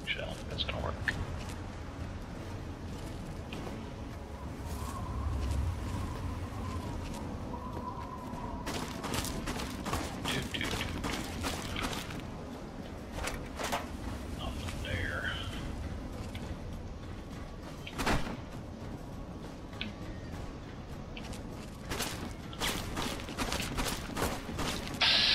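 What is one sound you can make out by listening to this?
Footsteps crunch over gravel and rubble.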